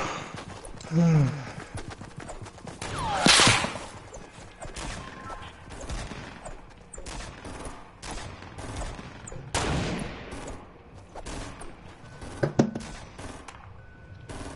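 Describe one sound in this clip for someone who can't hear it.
Pickaxes swing and whoosh through the air.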